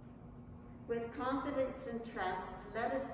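An elderly woman reads out calmly through a microphone in an echoing room.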